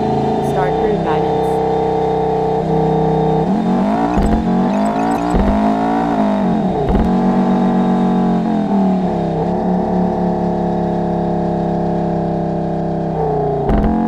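A sports car engine hums and revs, rising and falling in pitch.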